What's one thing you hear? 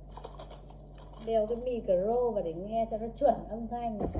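A paper box rustles and crinkles.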